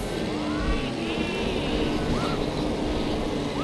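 Small rocket boosters roar with a whoosh.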